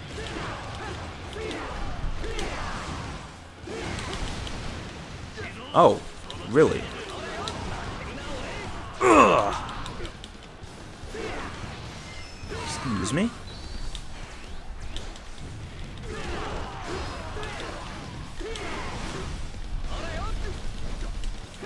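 Weapons clash and slash repeatedly in a battle.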